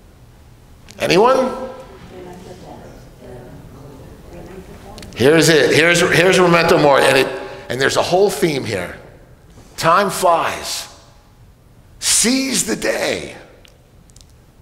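An older man speaks with animation through a microphone in a large echoing hall.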